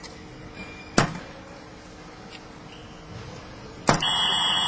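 Darts thud sharply into a board.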